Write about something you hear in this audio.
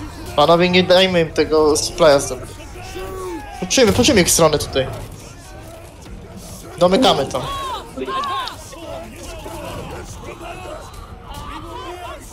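A crowd of soldiers shouts in a battle.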